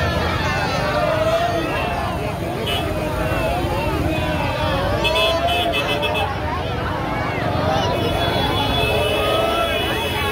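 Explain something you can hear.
A large crowd chatters and shouts all around outdoors.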